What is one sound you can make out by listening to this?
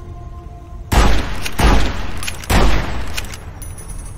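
A gun fires several loud shots in quick succession.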